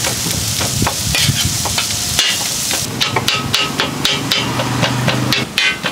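Metal tongs scrape across a griddle.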